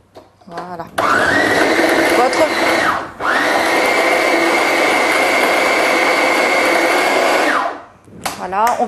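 A food processor whirs loudly as it chops.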